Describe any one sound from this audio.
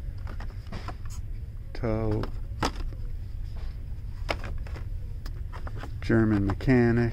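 A plastic toy package crinkles and taps in a hand.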